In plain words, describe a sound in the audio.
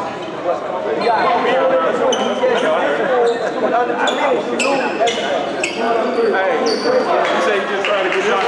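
Several young men shout and chant together in a large echoing gym.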